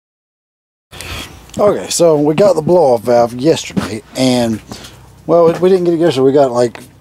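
A man speaks casually close by.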